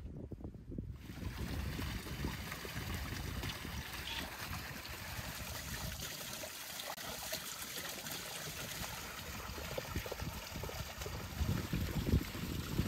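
Water splashes steadily from a spring into a basin.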